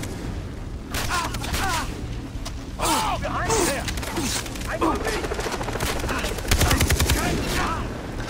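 A rifle fires in sharp bursts.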